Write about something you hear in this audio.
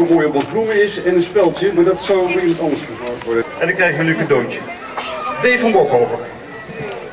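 A man speaks through a microphone and loudspeaker.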